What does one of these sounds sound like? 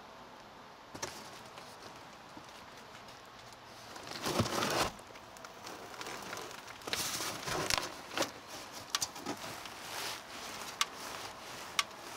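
Cardboard scrapes and rustles as a box is handled.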